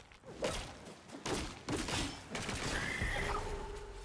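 A rocky burst crashes and rumbles.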